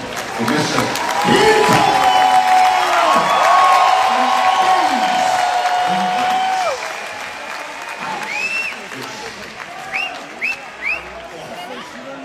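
A large crowd cheers loudly in a big echoing hall.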